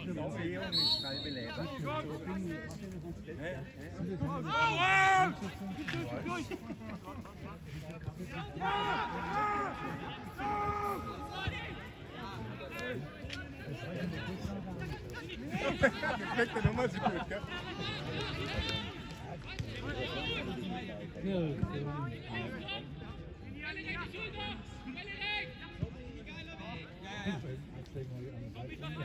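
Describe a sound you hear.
Young men shout to each other across an open pitch outdoors.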